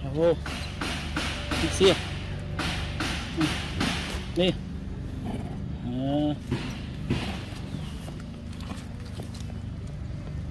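A small monkey bites and chews juicy fruit with wet, smacking sounds.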